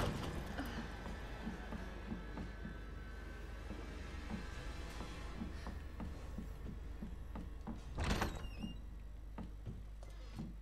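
Footsteps thud steadily on a hard floor indoors.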